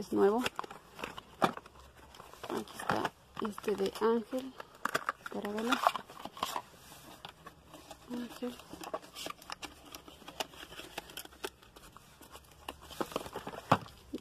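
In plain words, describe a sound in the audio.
Small plastic containers knock and rattle as they are moved around.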